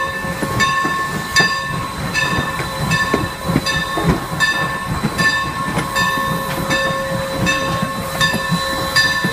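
A steam locomotive chuffs in a steady, even rhythm close by.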